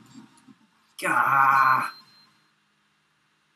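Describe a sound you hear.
A loud electronic jingle blares briefly.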